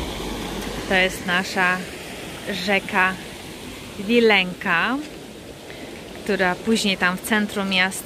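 A river flows quietly.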